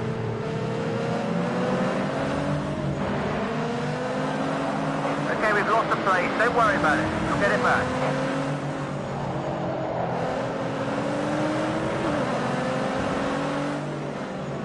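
A racing car engine drones and revs up through the gears.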